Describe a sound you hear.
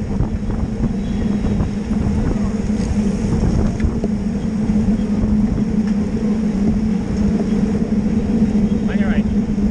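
Wind rumbles and buffets loudly against a microphone.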